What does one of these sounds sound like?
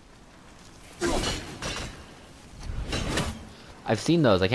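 An axe whooshes through the air and strikes with a heavy thud.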